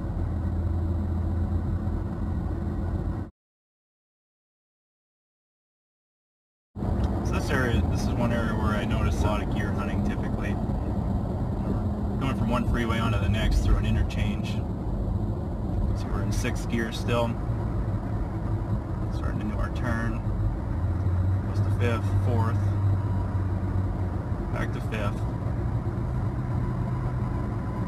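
Tyres roll on the road with a steady rush.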